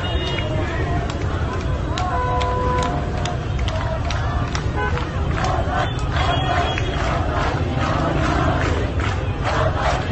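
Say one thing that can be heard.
Sharp bangs crack out again and again among a crowd.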